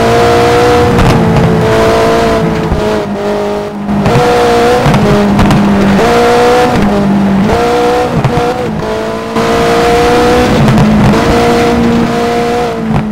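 A rally car engine roars and revs up and down with quick gear changes.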